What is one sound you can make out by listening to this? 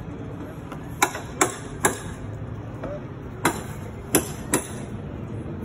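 A hammer knocks sharply on a roof a few times.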